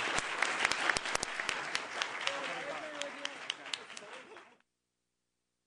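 A crowd of people chatter in a room.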